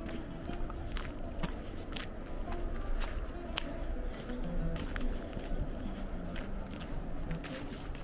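Footsteps scuff steadily along a paved path.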